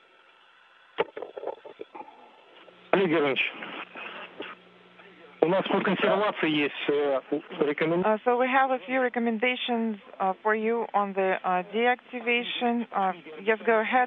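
Men talk and call out to each other, heard over a radio link.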